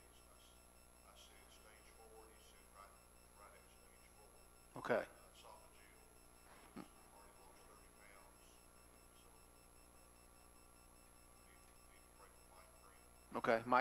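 A middle-aged man speaks calmly and haltingly into a microphone.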